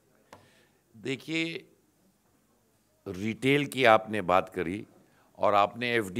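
A middle-aged man speaks firmly into microphones, close by.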